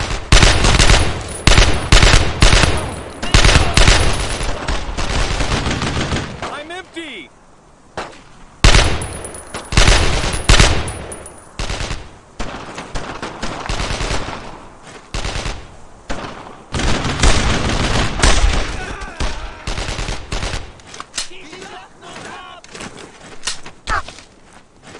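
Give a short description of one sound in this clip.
A rifle fires shot after shot, with sharp loud bangs.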